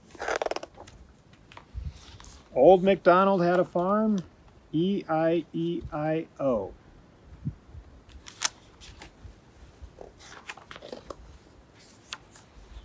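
Pages of a book rustle as a man turns them.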